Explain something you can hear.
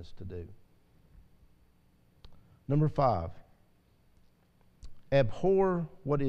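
An elderly man speaks slowly and calmly through a microphone.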